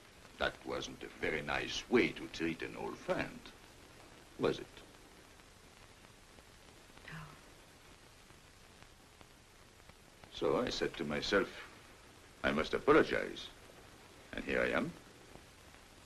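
A man speaks quietly and intently, close by.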